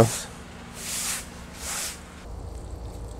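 A broom scrapes across the floor.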